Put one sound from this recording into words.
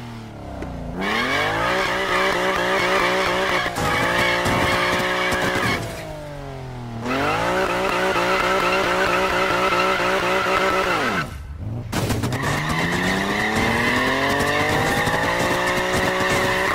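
Tyres screech as a car spins in a burnout.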